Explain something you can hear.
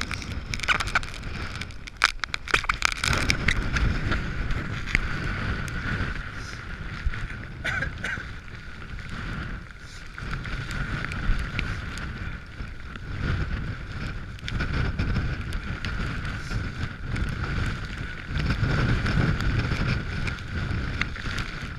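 Wind buffets the microphone loudly outdoors.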